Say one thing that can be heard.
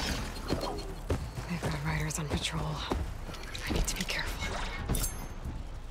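A bowstring twangs as arrows are loosed.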